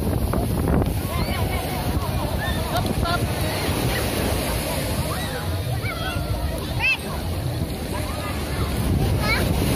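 Children's voices chatter and call out nearby.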